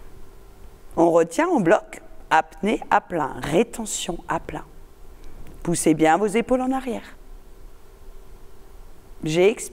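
An older woman speaks calmly and clearly into a small microphone.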